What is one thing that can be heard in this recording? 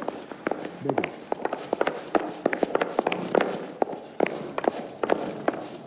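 Footsteps clatter down wooden stairs.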